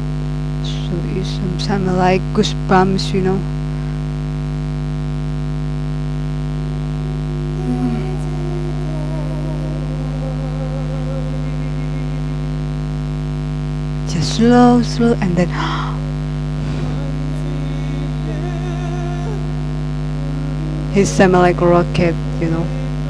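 A man sings through a microphone, heard softly from a music playback.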